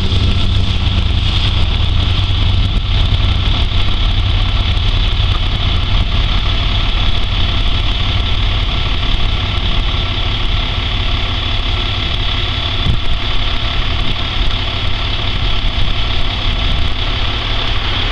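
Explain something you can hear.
A propeller plane's engine drones loudly nearby and slowly moves away.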